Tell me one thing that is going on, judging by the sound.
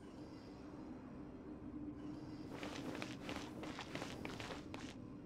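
A magical shield hums steadily.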